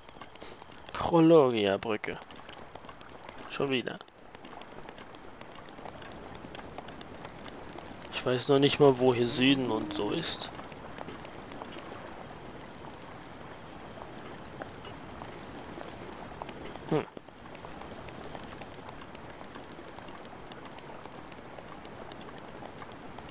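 Quick footsteps run over stone paving.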